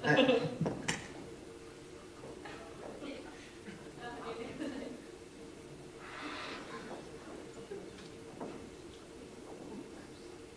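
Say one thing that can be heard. A brass band plays softly.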